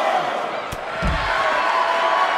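A heavy body thuds onto a hard floor.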